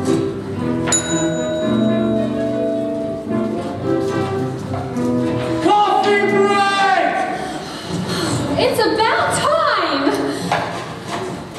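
A group of singers sings with music in a large echoing hall.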